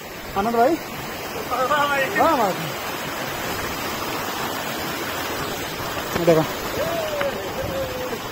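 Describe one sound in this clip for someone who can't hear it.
A stream rushes over rocks outdoors.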